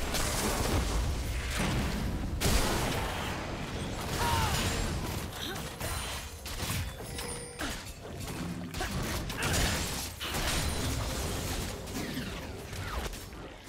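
Weapons clash and strike in quick bursts.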